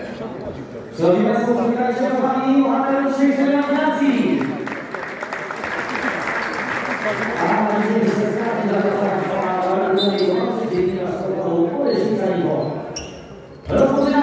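Spectators chant and shout loudly in an echoing hall.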